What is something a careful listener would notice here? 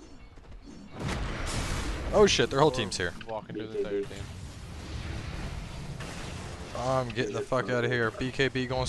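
Magic spells whoosh and crackle as fighters clash.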